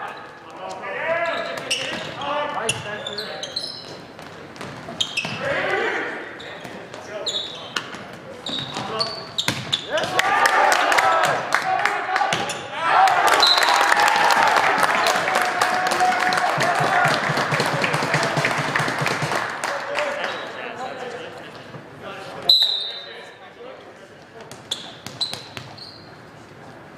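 A volleyball is struck with sharp slaps that echo in a large hall.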